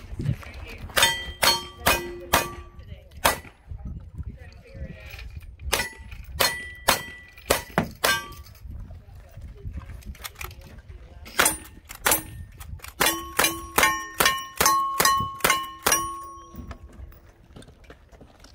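Steel targets ring after being hit.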